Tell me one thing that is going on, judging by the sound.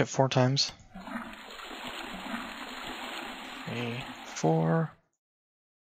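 A toilet flushes with a rushing swirl of water.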